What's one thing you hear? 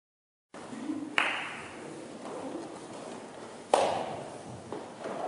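A choir of young voices sings in a large echoing hall.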